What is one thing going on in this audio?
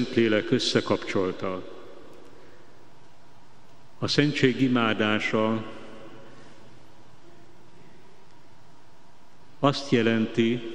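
An elderly man speaks slowly and solemnly into a microphone, in a large echoing hall.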